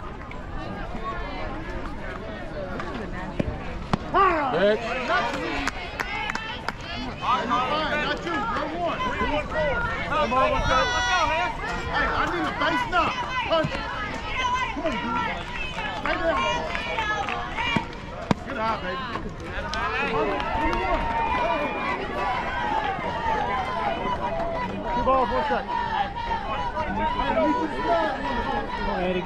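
Young women shout and cheer nearby, outdoors.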